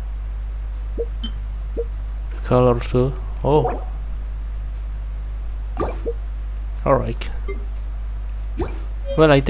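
Soft menu clicks and chimes sound now and then.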